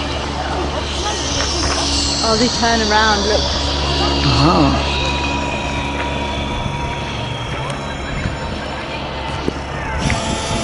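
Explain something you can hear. A zip line pulley whirs along a steel cable, rising and then slowly falling in pitch.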